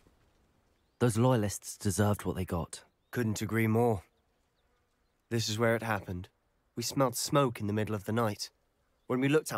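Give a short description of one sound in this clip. A young man speaks with animation, close by.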